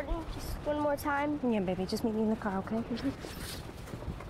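A woman answers calmly nearby.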